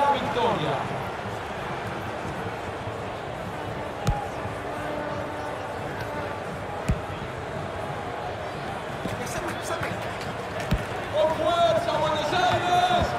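A large crowd murmurs and cheers steadily in an echoing arena.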